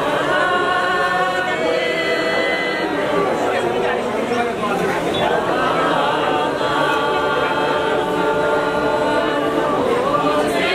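A group of men and women sing a slow song together nearby.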